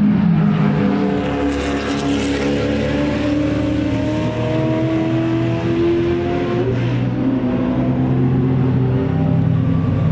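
Sports car engines roar as two cars accelerate down the track.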